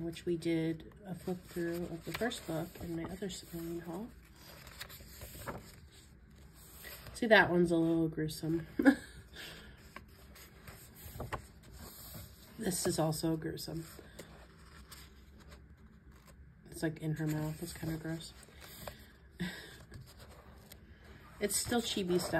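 Paper pages rustle and flip as they are turned by hand.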